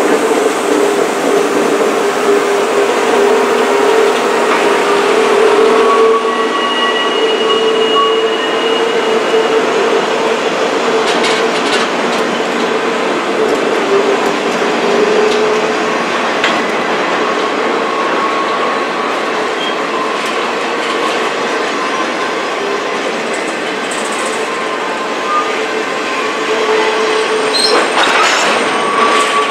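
A freight train rumbles and clatters steadily past close by.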